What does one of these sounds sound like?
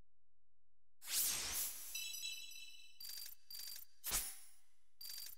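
Menu panels sweep in with a loud whoosh.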